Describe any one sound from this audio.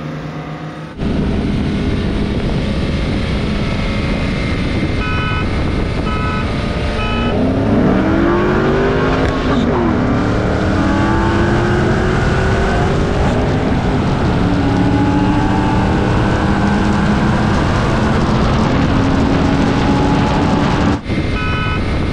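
A sports car engine roars and revs up through its gears close by.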